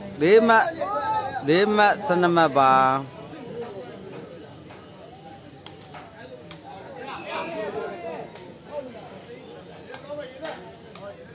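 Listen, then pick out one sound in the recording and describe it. A crowd of men chatters and calls out outdoors.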